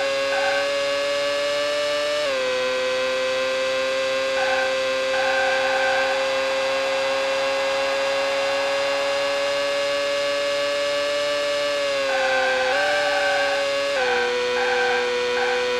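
A racing car engine whines at high revs, dropping in pitch as gears shift.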